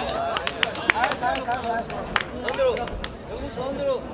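Sharp claps and snaps ring out among the crowd.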